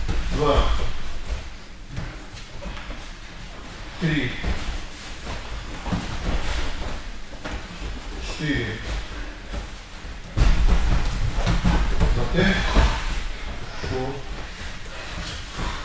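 Bodies thump and shuffle on a padded mat.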